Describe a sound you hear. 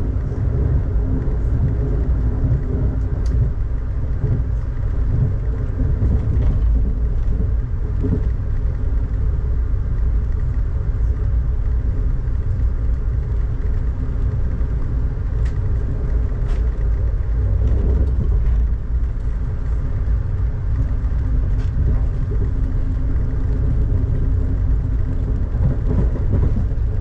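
Raindrops tap against a window.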